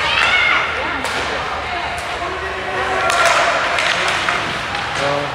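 A hockey stick clacks against a puck.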